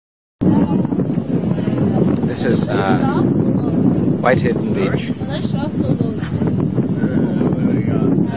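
Wind buffets the microphone in gusts.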